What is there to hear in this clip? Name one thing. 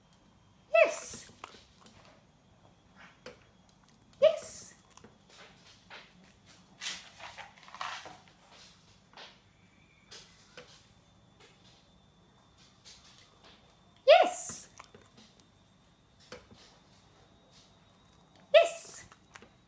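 A small dog takes a treat from a hand.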